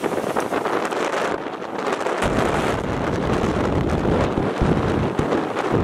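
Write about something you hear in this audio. Choppy waves splash against a rocky shore.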